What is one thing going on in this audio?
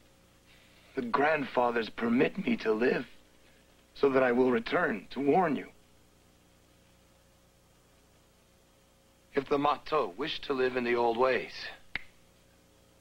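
A young man speaks urgently, close by.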